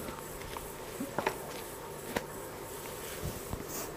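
Silk cloth rustles as it is lifted and unfolded.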